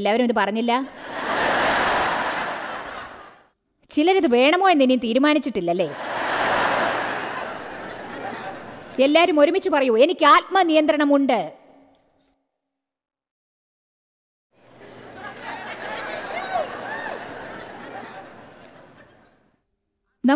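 A large audience laughs loudly.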